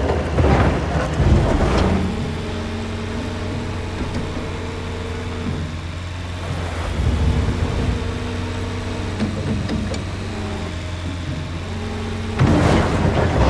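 A diesel excavator engine hums steadily.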